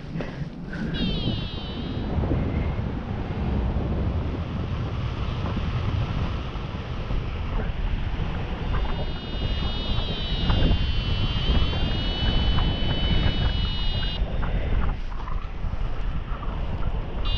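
Wind rushes loudly and steadily past, as if in flight outdoors.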